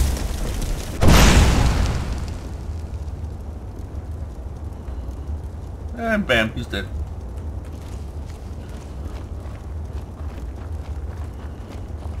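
Flames crackle and hiss steadily.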